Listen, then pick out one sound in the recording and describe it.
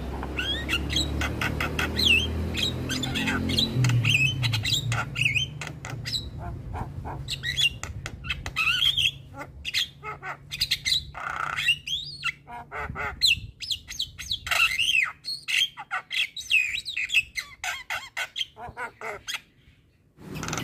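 A caged bird sings close by in quick, varied whistles, chirps and clicks.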